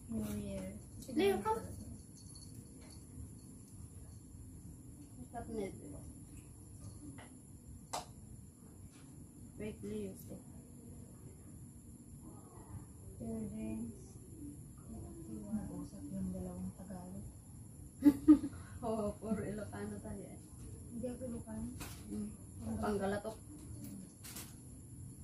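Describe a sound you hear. Young women talk casually nearby.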